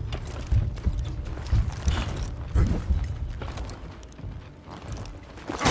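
Weapons clash and thud heavily in a fight.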